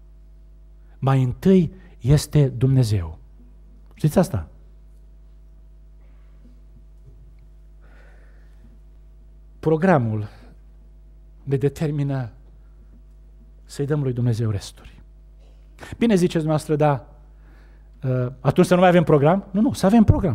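A middle-aged man preaches with emphasis into a microphone, in bursts with pauses between phrases.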